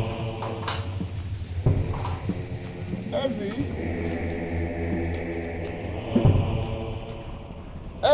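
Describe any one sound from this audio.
An elderly man talks to himself in an agitated voice.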